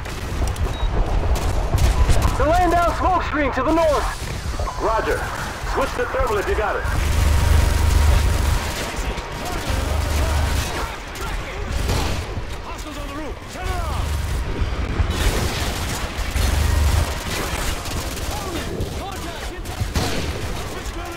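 Heavy explosions boom and rumble deeply.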